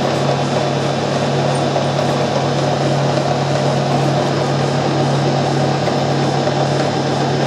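A reamer cuts into spinning metal with a grinding hiss.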